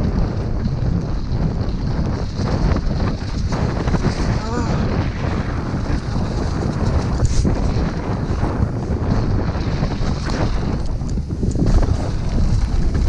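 A downhill mountain bike rattles and clatters over a rough dirt trail.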